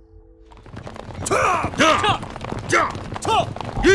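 Horses' hooves clop on a dirt road.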